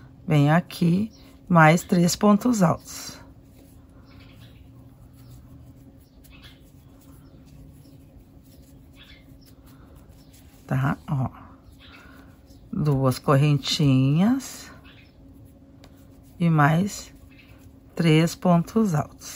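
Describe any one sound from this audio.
A crochet hook softly pulls through yarn.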